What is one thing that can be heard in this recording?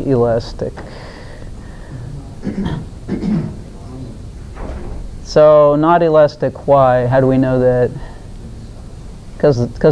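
An elderly woman speaks with animation into a nearby microphone, her voice carrying in a room with a slight echo.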